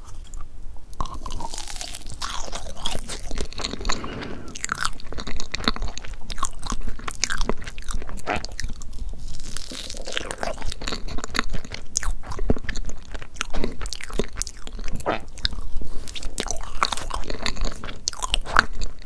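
A woman chews soft cake close to a microphone with moist smacking sounds.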